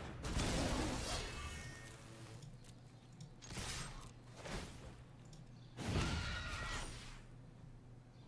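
A magical spell whooshes and crackles.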